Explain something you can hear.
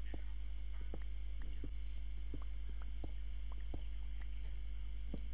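A game pickaxe strikes stone in quick, regular knocks.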